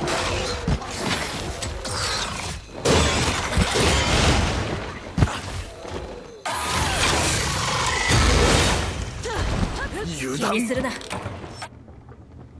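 A huge monster stomps.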